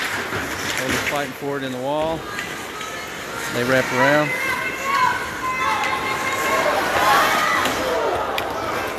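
Spectators shout and cheer loudly nearby.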